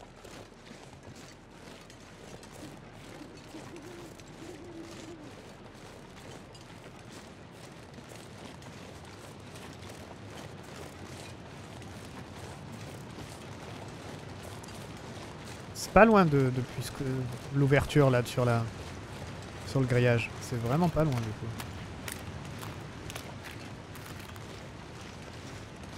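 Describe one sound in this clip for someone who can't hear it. Footsteps crunch softly through snow and dry grass.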